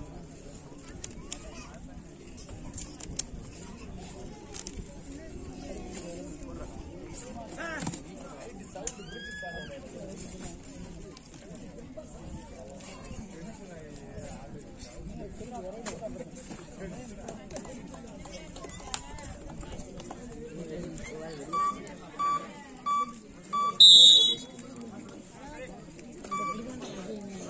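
A large crowd chatters and murmurs outdoors.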